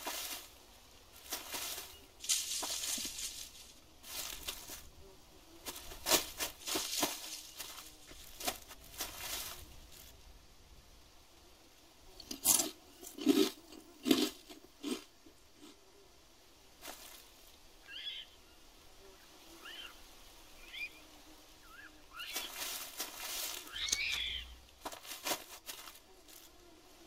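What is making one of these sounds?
Footsteps rustle through dry leaves and undergrowth.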